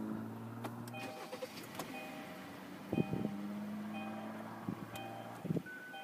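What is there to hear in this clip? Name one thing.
A dashboard chime beeps a few times.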